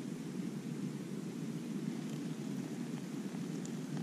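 Water pours from a pot.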